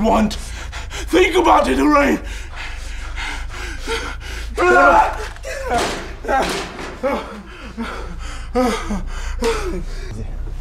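A man cries out and groans in distress.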